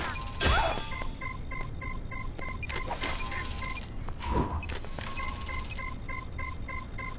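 An electronic machine beeps in a quick, even repeating pattern.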